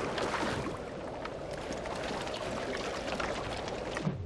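Footsteps crunch on sand and rock.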